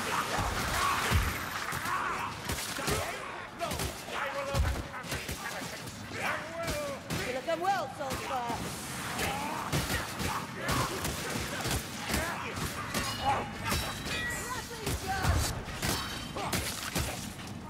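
Blades strike and slash flesh in rapid melee combat.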